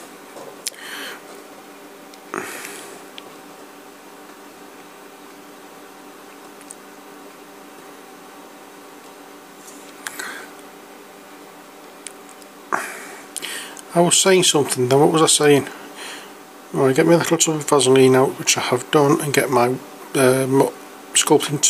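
A metal pick scrapes and taps lightly on hard plastic.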